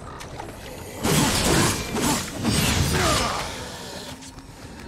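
Blades clash and slash loudly in a fight.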